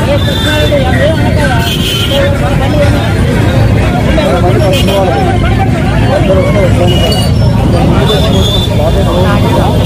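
A crowd of men and women talk and shout over one another close by, outdoors.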